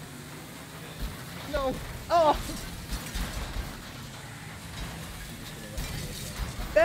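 Cars crash and bang into each other with heavy metal thuds.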